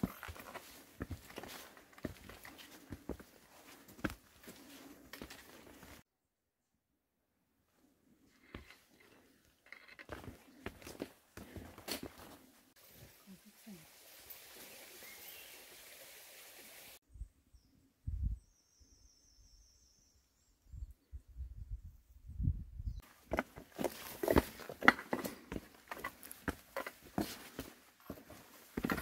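Footsteps crunch and scuff on loose stones and rock.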